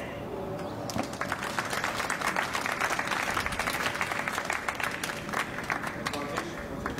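A small crowd applauds.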